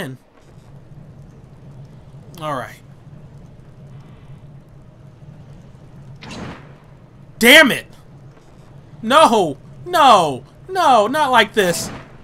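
A fire arrow bursts into flames with a whoosh.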